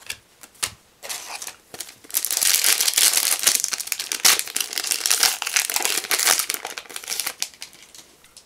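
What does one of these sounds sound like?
A foil booster pack crinkles and tears open.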